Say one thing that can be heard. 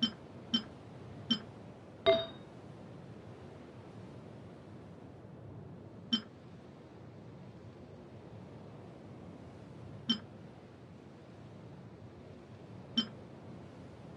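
Short, bright menu clicks sound now and then.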